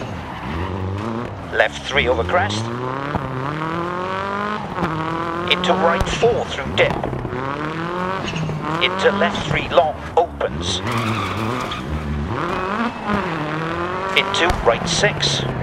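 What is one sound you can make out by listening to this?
A rally car engine revs hard, rising and dropping with each gear change.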